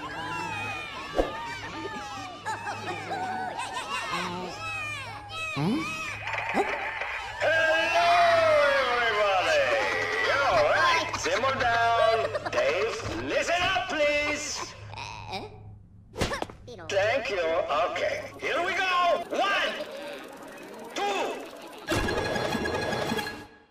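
Cartoonish high voices chatter and babble excitedly.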